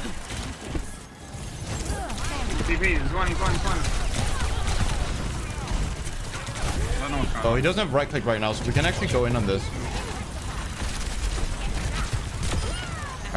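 Gunfire and explosions from a video game blast repeatedly.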